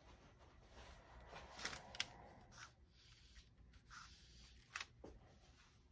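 A sheet of paper rustles under a hand.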